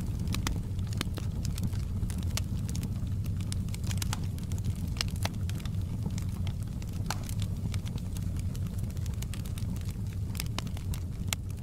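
Flames roar with a low steady rumble.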